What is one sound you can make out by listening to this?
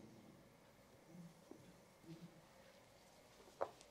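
A towel rustles as a woman handles it.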